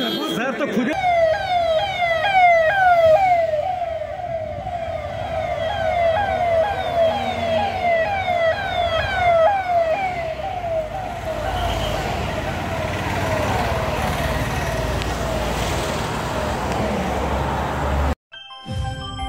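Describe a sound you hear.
A siren wails over and over as vehicles pass by.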